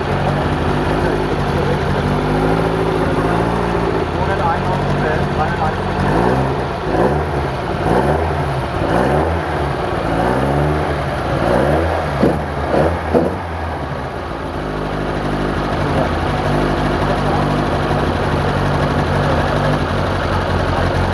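A car engine idles with a steady rumble.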